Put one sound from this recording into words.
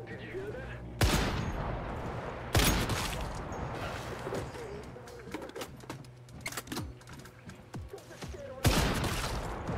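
A rifle fires loud gunshots that echo.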